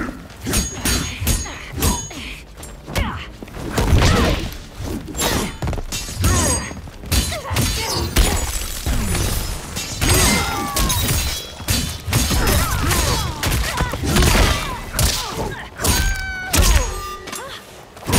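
Blades swing through the air with swift whooshes.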